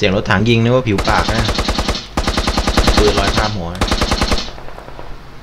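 A machine gun fires long, rapid bursts close by.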